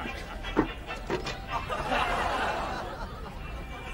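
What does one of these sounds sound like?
A metal tin lid clicks open.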